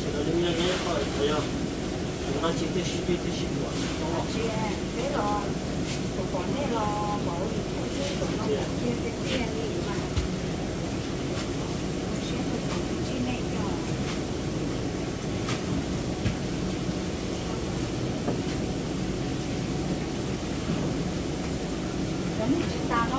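A knife scrapes and taps on meat in a bowl.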